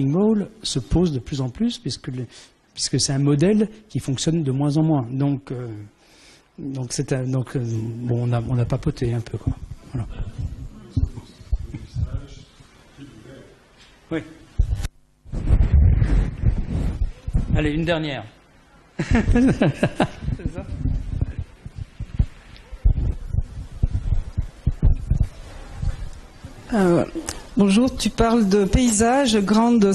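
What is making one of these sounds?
An elderly man speaks calmly into a microphone in an echoing hall.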